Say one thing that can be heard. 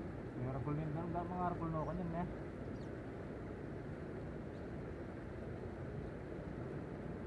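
A river flows with a low, steady rush.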